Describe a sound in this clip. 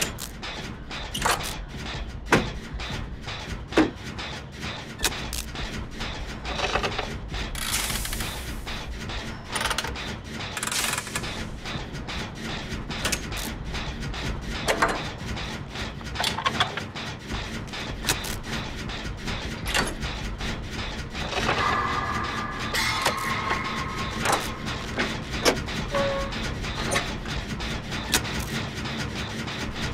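Metal parts clank and rattle as a machine is repaired.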